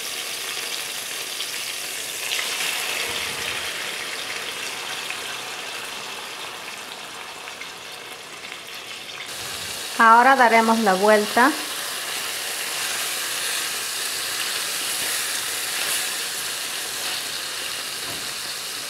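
Meat sizzles and bubbles steadily in a hot pot.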